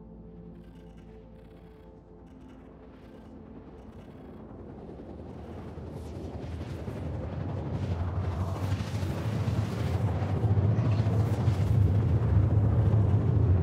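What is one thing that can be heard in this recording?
A spaceship engine hums low and swells to a loud, deep roar.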